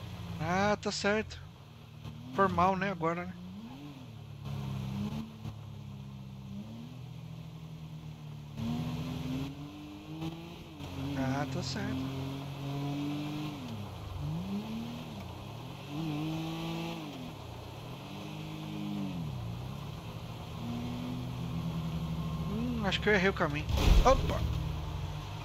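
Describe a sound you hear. A car engine revs and shifts through gears at speed.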